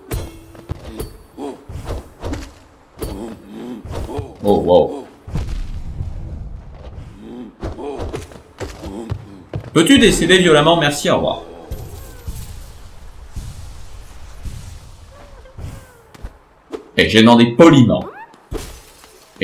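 A blade swishes in quick slashing strikes.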